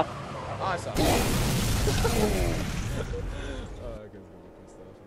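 A loud explosion bursts and rumbles away.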